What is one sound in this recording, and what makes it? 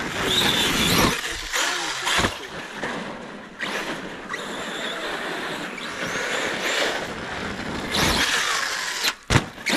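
A toy car's tyres scrape and crunch over icy snow.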